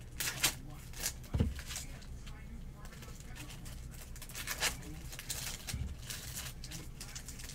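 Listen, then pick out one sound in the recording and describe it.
Hands shuffle and rustle through stiff trading cards.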